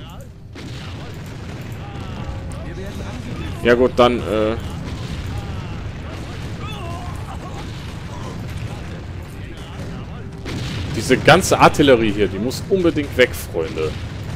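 Explosions boom and crackle in a battle.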